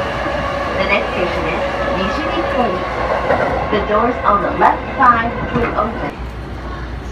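A train rumbles and squeals along the tracks.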